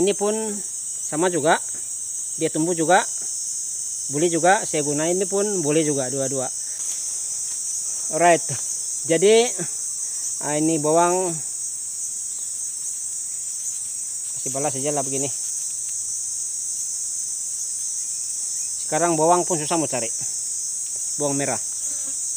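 A young man talks calmly close by, in short bursts with pauses.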